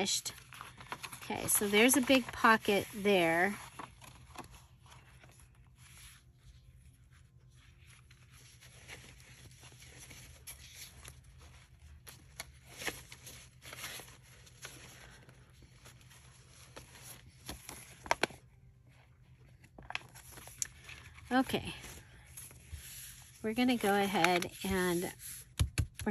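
Paper rustles and crinkles as hands handle it.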